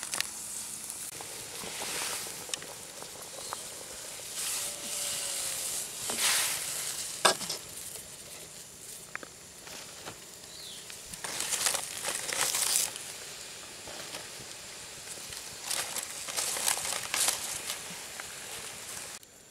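Palm leaves rustle and crackle as they are handled.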